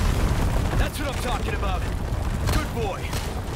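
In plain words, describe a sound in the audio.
A man shouts with excitement.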